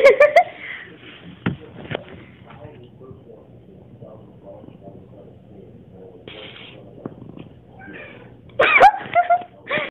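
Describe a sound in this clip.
A cat meows loudly nearby.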